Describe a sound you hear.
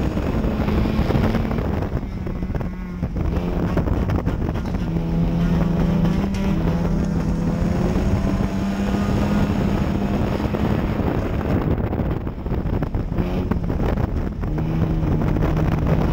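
Tyres rumble and crunch over a dirt track.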